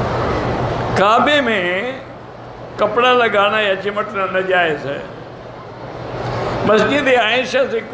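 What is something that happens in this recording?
An elderly man speaks calmly into a microphone in a large echoing hall.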